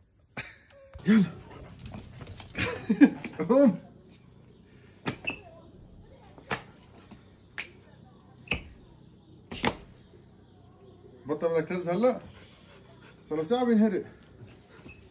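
A dog whines and howls in bursts.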